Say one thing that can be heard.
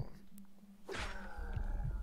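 A sword strikes a monster with a heavy thud.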